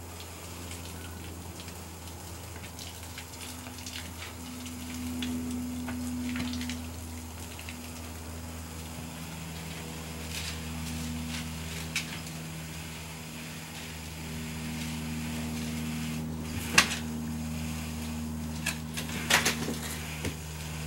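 Twigs and leaves rustle as someone works among the plants.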